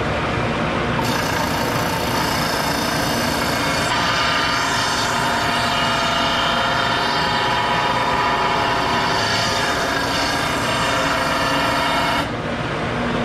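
Wood grinds and rasps against a spinning sanding disc.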